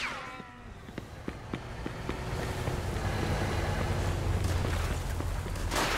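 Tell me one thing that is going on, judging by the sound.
Footsteps tap on a hard floor and pavement.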